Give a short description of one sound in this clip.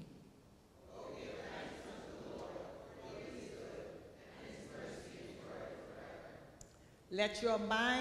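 A congregation reads aloud together in a murmuring chorus.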